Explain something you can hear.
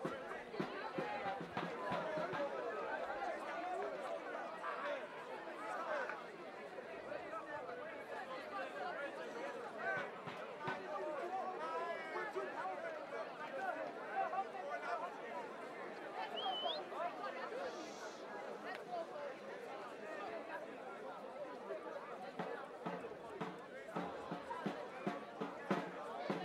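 A group of young men chatter and call out at a distance outdoors.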